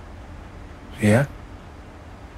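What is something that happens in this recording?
A man says a single word quietly, close by.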